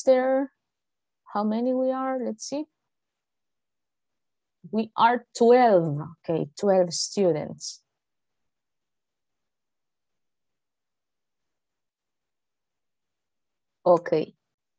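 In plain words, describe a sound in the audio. A woman speaks with animation over an online call, in short bursts with pauses.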